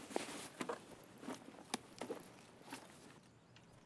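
Quick soft clicks sound one after another.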